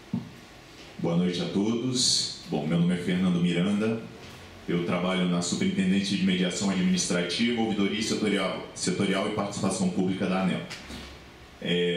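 A young man speaks calmly into a microphone over loudspeakers in a large room.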